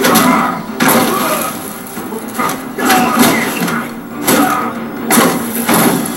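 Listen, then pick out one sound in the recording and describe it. Punches and kicks from a fighting game thud and clash through a television speaker.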